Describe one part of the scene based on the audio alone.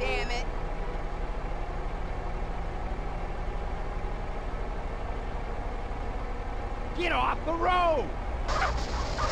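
A car engine hums with a low, steady rumble.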